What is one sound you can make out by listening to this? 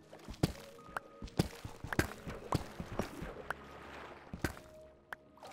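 A pickaxe chips at stone with quick, sharp knocks.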